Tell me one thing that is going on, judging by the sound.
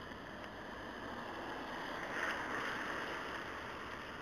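An oncoming car swishes past on the wet road.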